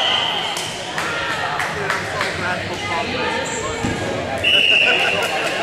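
Players shout and call out across an echoing hall.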